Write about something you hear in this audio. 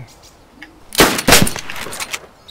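A rifle fires a single loud shot that rings out briefly.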